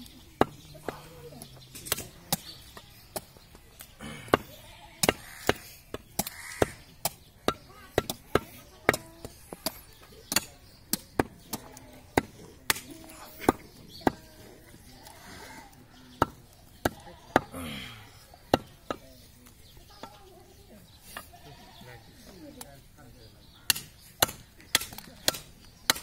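A cleaver chops meat on a wooden block with sharp, repeated thuds.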